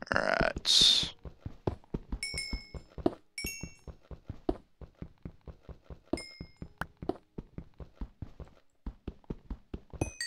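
A pickaxe chips at stone with quick, steady taps.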